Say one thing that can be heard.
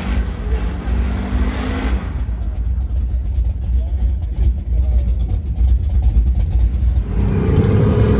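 Mud splashes and sprays from spinning tyres.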